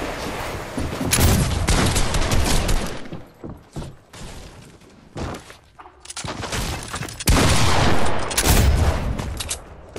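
A wooden wall is built with quick knocking thuds.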